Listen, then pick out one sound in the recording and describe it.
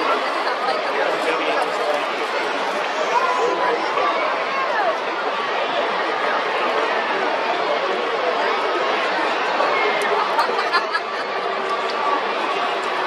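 A large crowd murmurs and chatters steadily all around, outdoors.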